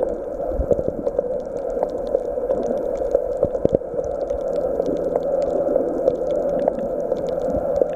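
Bubbles rise and fizz close by underwater.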